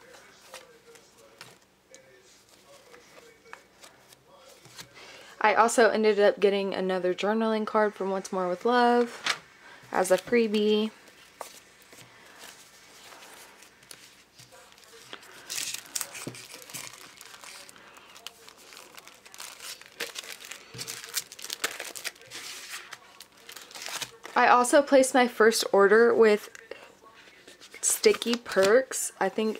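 Paper sheets rustle and crinkle as they are handled.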